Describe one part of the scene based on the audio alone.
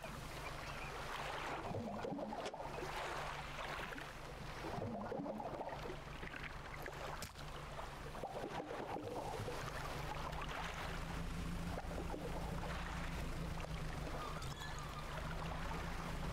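A boat engine hums steadily.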